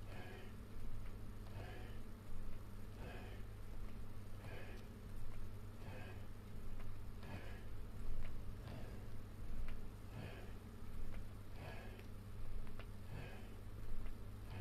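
A man breathes out hard in a steady rhythm, close by.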